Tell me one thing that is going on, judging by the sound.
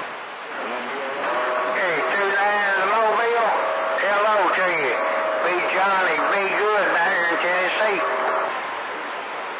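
A man's voice talks through a crackly radio receiver.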